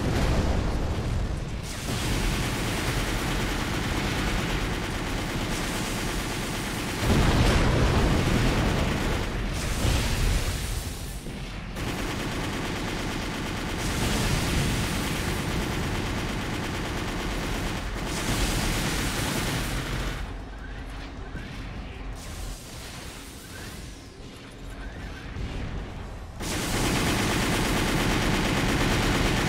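Heavy machine thrusters roar steadily.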